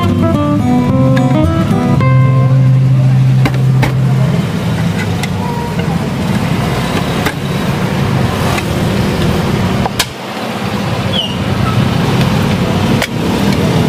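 A can lid is pried open with a metal opener.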